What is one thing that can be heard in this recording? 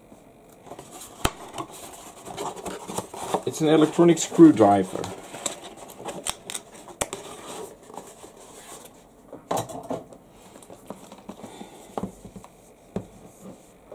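A cardboard box rustles and scrapes as hands handle it.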